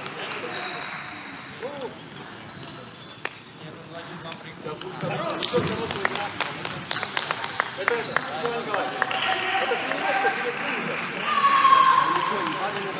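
A table tennis ball clicks back and forth on paddles and the table in a large echoing hall.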